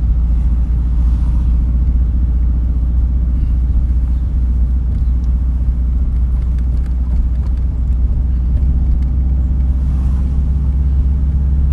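Tyres roll over pavement.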